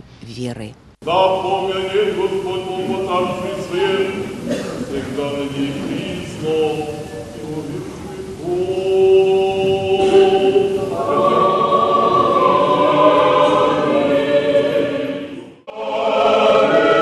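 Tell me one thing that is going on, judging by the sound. A choir sings a slow chant in a large echoing hall.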